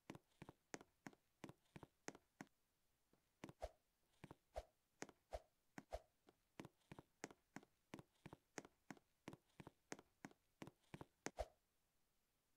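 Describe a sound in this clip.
Quick, light footsteps patter steadily.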